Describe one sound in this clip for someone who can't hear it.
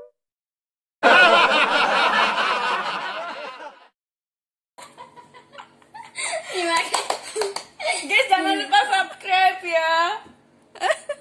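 A young woman laughs loudly nearby.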